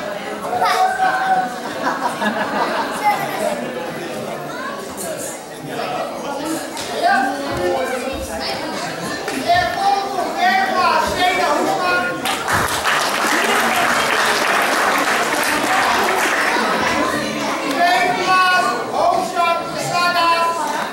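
Children and adults chatter in a large echoing hall.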